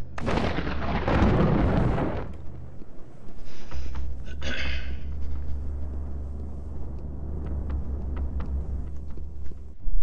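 Soft footsteps pad across a hard floor.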